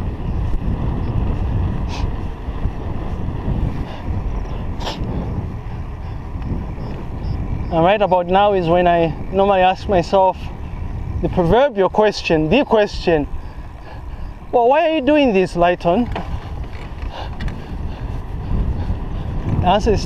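Wind rumbles against the microphone of someone riding a bicycle outdoors.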